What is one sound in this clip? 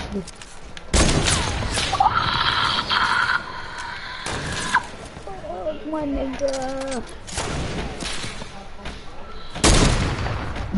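Gunshots fire loudly, one at a time.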